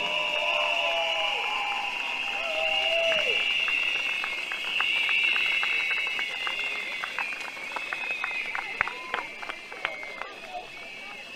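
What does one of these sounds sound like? A crowd cheers and blows whistles outdoors.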